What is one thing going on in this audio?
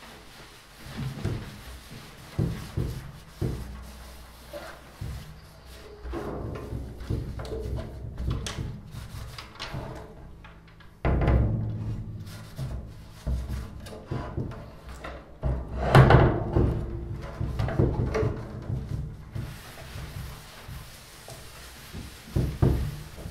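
A hand rubs across a drumhead with a soft swishing.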